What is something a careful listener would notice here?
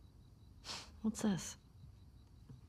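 A young girl asks a question curiously, close by.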